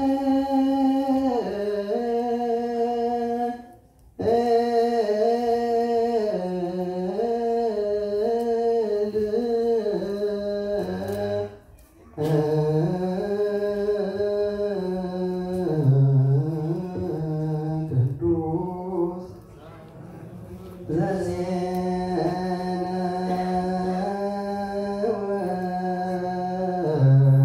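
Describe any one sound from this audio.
A man chants a reading aloud in a slow, drawn-out voice nearby, pausing now and then for breath.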